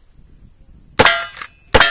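A rifle fires loudly outdoors.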